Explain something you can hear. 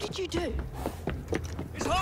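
A horse-drawn carriage rumbles and rattles over cobblestones.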